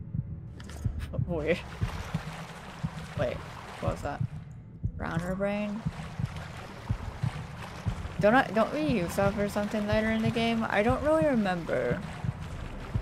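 A young woman talks with animation close to a headset microphone.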